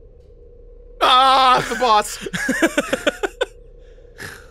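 A second man speaks into a close microphone.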